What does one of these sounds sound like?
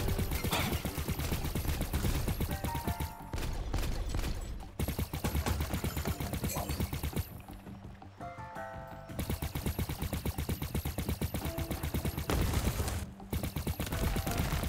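Rhythmic game music with a thumping beat plays.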